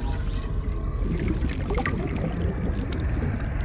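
Bubbles gurgle and fizz.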